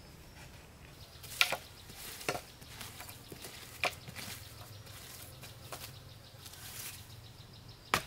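Soil scrapes and crumbles under hands digging.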